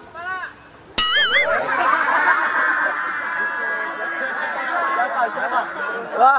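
A crowd of young people cheers and shouts loudly.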